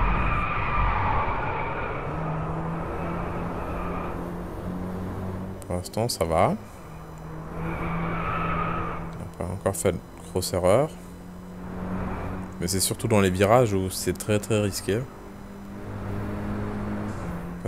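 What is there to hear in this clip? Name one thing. A car engine hums steadily, rising and falling with speed.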